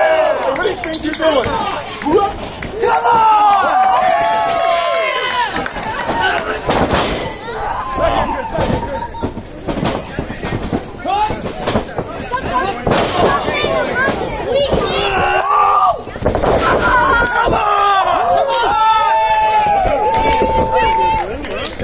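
A crowd of men and women shouts and cheers nearby, outdoors.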